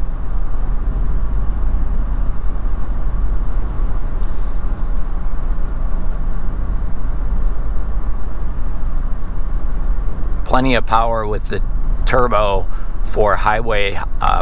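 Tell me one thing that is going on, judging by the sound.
Tyres rumble steadily on a highway from inside a moving car.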